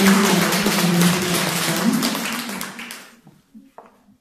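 An audience applauds loudly in a hall and the clapping fades away.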